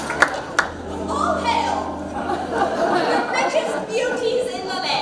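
A woman sings loudly on stage, heard through a microphone.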